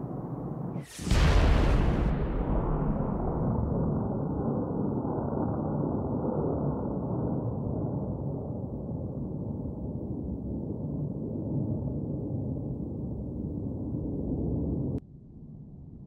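A huge explosion booms and rumbles on.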